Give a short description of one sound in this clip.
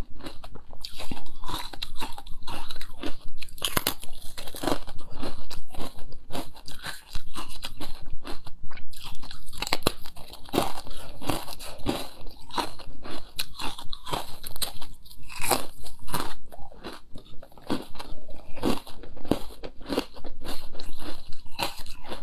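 A young woman bites and crunches a crisp, brittle snack close to a microphone.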